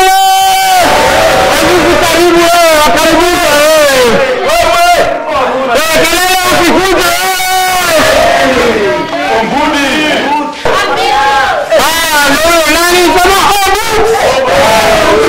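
A man sings loudly and with passion through a microphone.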